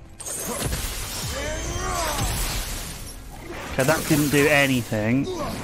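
Metal blades swing and strike with sharp clangs.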